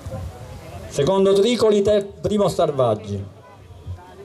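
A man announces loudly through loudspeakers outdoors.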